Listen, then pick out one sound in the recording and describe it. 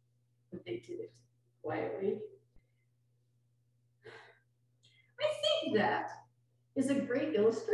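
An older woman speaks calmly through a microphone in short phrases.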